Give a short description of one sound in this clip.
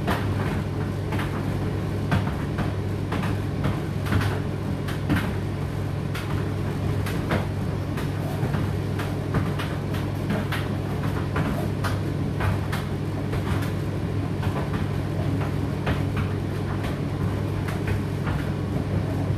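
Clothes tumble and thump inside a tumble dryer drum.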